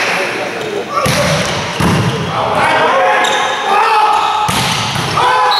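A volleyball is struck hard in a large echoing gym.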